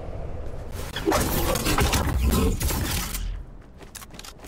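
Wind rushes loudly past during a glide.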